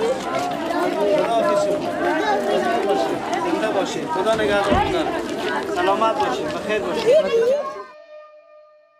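A crowd of women and children chatters and calls out loudly nearby, outdoors.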